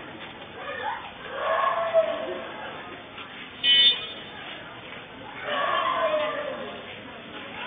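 Men talk in low voices nearby.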